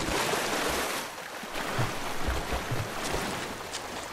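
Water sloshes and splashes as someone swims.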